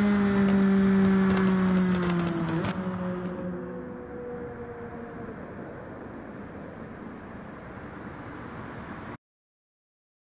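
A racing car engine roars at high speed, its pitch slowly dropping and fading.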